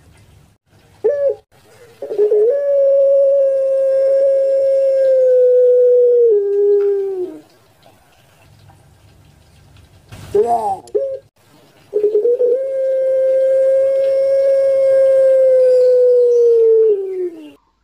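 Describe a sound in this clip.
A dove coos close by with long, drawn-out calls that drop in pitch at the end.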